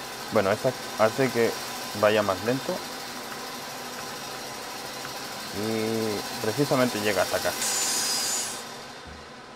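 A circular saw whirs steadily.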